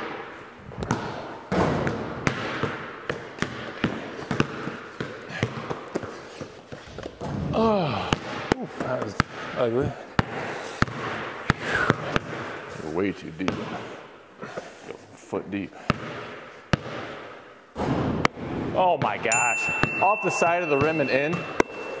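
A basketball clangs off a hoop's rim.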